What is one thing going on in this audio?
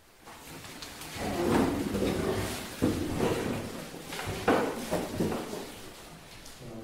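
Chairs scrape and people shuffle as they sit down.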